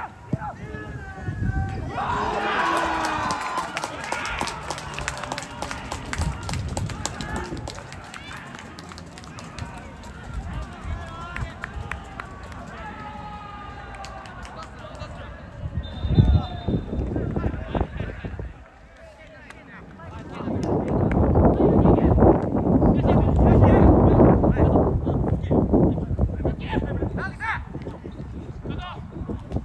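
Young men shout to each other outdoors at a distance.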